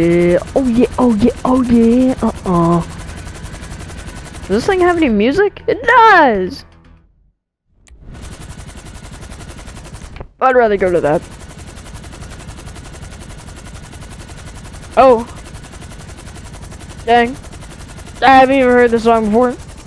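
A helicopter's rotor thrums steadily overhead.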